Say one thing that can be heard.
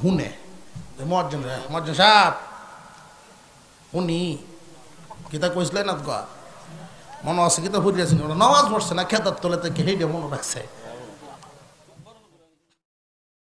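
A man preaches with animation into a microphone, heard through loudspeakers with some echo.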